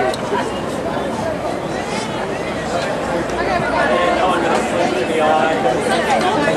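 A crowd of people chatters and talks nearby.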